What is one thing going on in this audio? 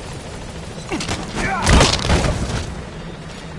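Soldiers scuffle and grapple roughly.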